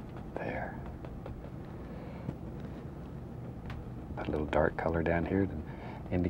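A stiff brush taps and scrubs against canvas.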